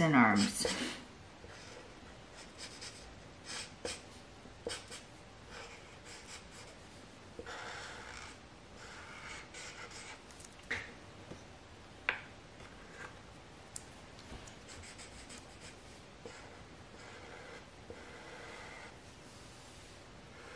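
A felt-tip marker scratches and squeaks softly on paper.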